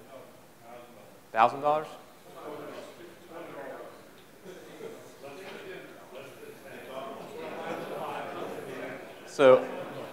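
A man speaks calmly to an audience through a microphone.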